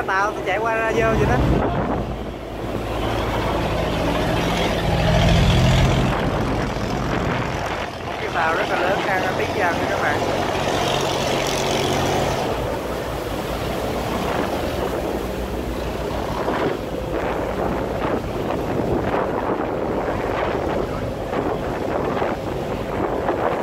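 Water churns and splashes against a hull.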